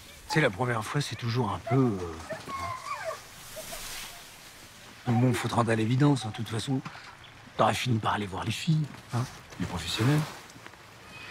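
A middle-aged man talks calmly and thoughtfully close by.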